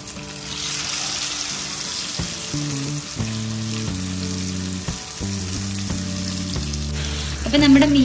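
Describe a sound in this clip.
Fish sizzles and crackles as it fries in hot oil.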